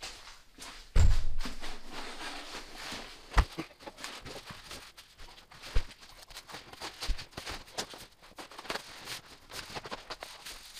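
Stiff paper rustles and crinkles as it is unrolled and handled.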